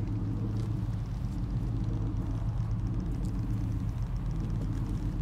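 Footsteps crunch through dry leaves and undergrowth.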